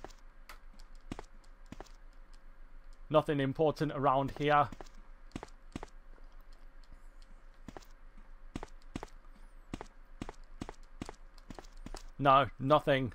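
Footsteps tap on a hard floor at a steady pace.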